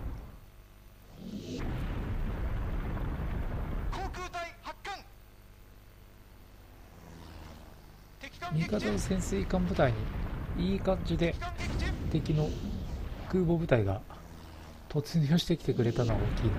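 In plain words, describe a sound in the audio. Naval guns boom and shells burst with heavy explosions.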